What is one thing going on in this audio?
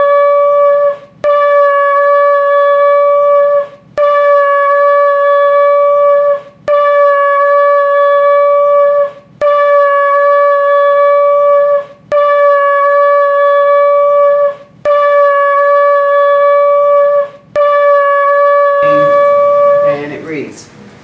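A man blows long, steady blasts on a ram's horn, with short breaks between them.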